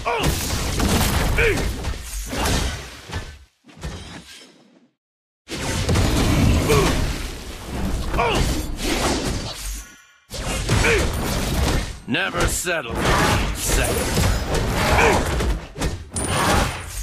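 Fantasy battle sound effects whoosh and crash as spells are cast.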